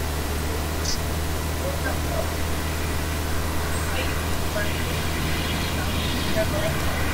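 Wooden boards clatter into place as a wall goes up.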